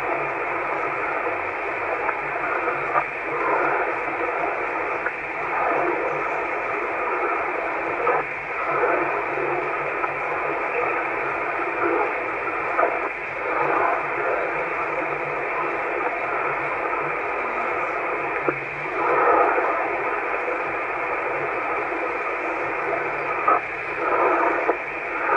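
A radio receiver hisses with steady static.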